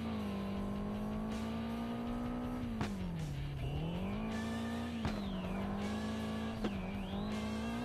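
A car engine roars at high revs, dipping and rising with gear shifts.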